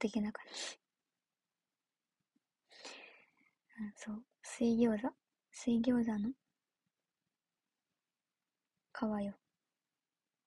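A young woman speaks softly and casually, close to the microphone, in short bursts with pauses.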